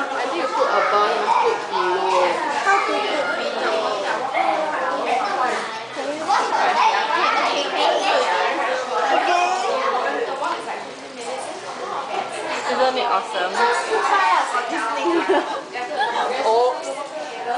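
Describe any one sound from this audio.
Many voices murmur in a busy room.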